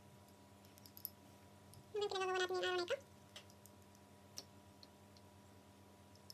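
A spoon clinks against a small bowl.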